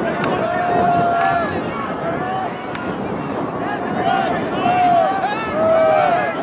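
Young players shout and call out to each other outdoors on an open field.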